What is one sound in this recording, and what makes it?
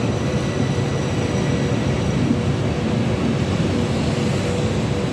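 A passenger train rolls slowly past with a steady low rumble.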